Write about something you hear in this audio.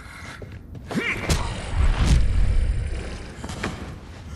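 A bat strikes a body with heavy thuds.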